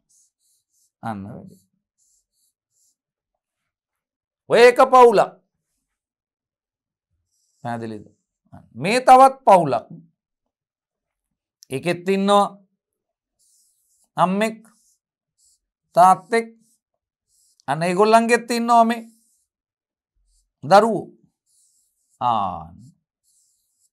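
A man speaks calmly in short phrases, close to a microphone, with pauses between them.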